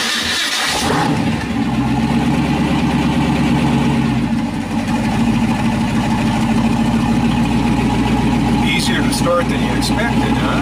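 A car engine idles with a loud, deep, steady rumble.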